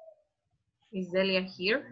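A young woman speaks through an online call.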